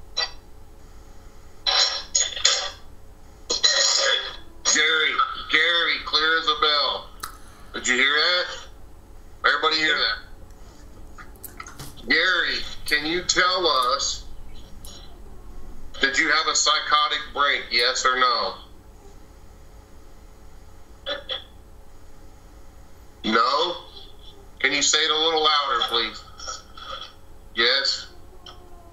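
A middle-aged man talks with animation over an online call.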